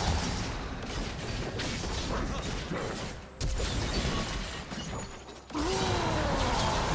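Magic spells whoosh and crackle in a busy game battle.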